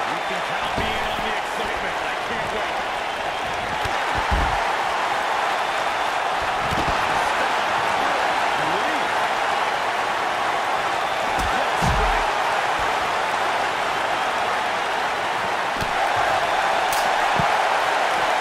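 Bodies thud heavily onto a hard floor.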